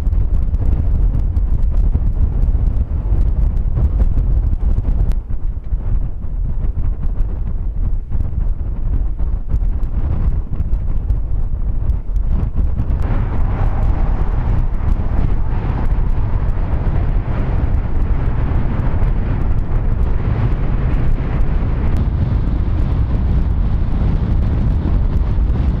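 Strong wind roars and buffets the microphone outdoors.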